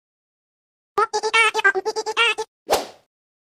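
A hen clucks in quick bursts.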